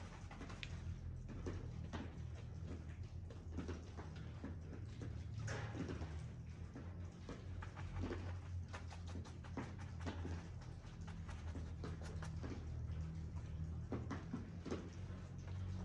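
A palette knife scrapes and taps against a canvas.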